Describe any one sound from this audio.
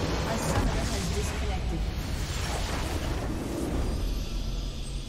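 A loud rumbling explosion booms and crumbles.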